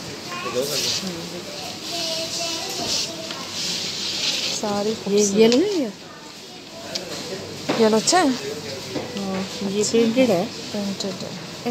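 Fabric rustles and crinkles as cloth is handled up close.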